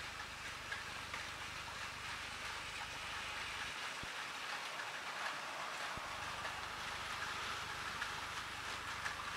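Toy trains whir and rattle along plastic tracks.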